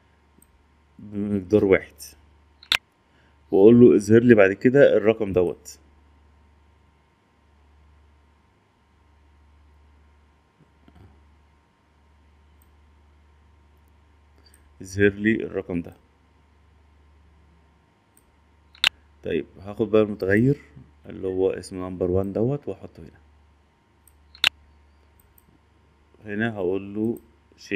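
A man speaks calmly, close to a microphone, explaining in short bursts with pauses.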